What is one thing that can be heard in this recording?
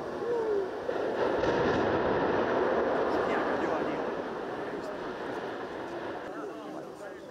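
A tower collapses with a loud, rumbling roar in the distance.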